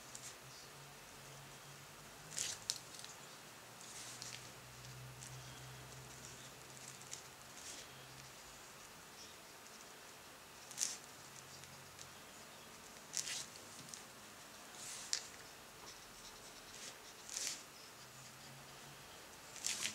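A paintbrush dabs and brushes watercolor onto paper.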